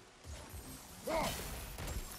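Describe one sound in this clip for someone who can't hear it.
A magical burst crackles and hums.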